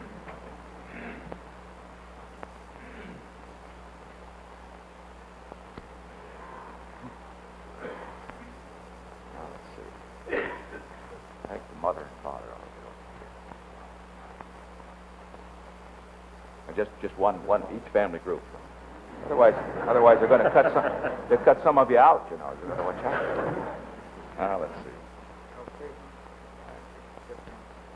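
Men talk quietly with one another nearby.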